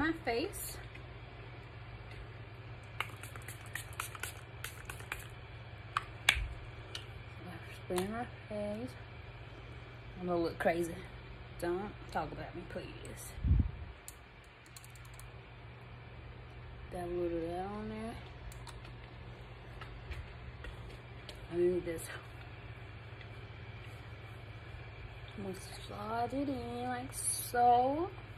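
A woman speaks calmly and closely into a microphone, in short phrases.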